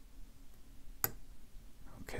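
A metal bolt clicks against a lock as it is turned.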